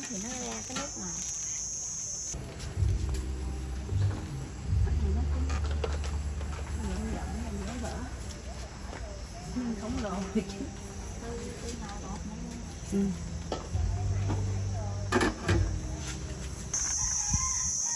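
A wood fire crackles and roars under a pot.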